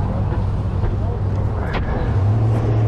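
A finger rubs against the microphone.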